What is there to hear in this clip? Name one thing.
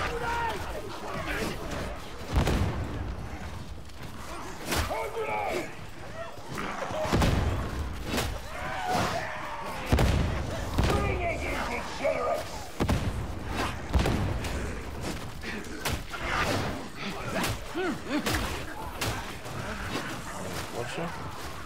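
Heavy blades hack into flesh with wet, crunching thuds.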